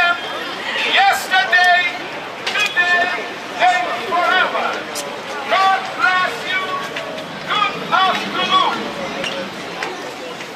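A crowd of people chants loudly outdoors.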